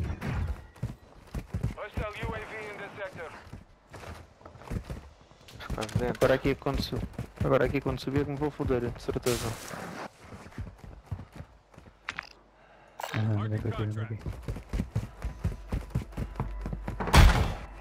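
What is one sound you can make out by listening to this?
Footsteps run across stone paving.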